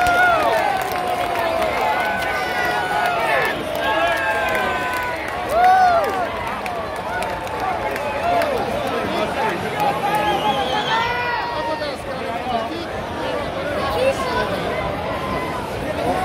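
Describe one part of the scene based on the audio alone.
A large stadium crowd chants and sings loudly outdoors.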